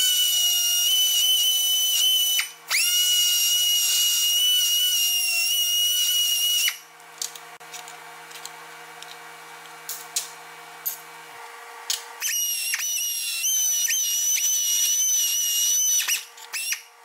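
A small pneumatic grinder whines loudly at a high pitch as it grinds metal.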